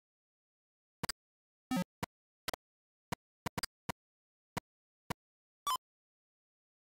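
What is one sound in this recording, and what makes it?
Short electronic beeps from a retro computer game sound in quick bursts.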